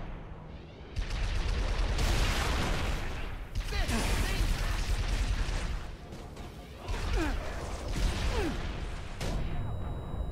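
Gunfire bursts out rapidly in a game.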